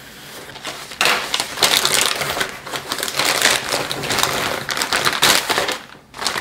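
A plastic mailer bag crinkles and rustles as it is torn open.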